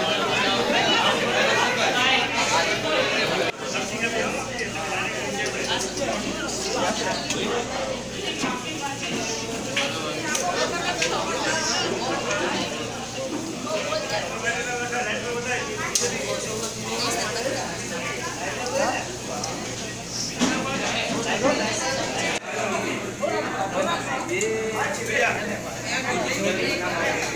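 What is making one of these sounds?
A crowd of men and women chatter all around indoors.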